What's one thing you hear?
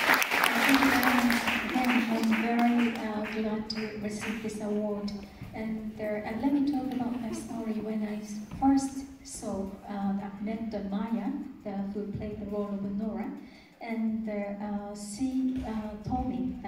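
A woman speaks calmly through a microphone and loudspeakers in an echoing hall.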